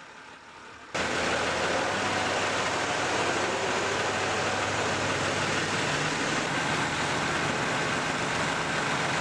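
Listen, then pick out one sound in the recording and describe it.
A crane engine runs with a loud, steady rumble.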